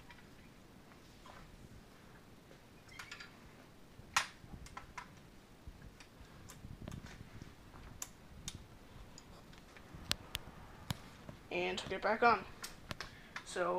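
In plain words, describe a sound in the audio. A metal cart frame clicks and rattles as it is unfolded.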